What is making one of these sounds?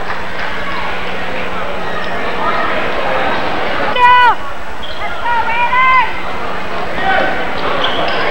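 A crowd of spectators murmurs and cheers in a large echoing gym.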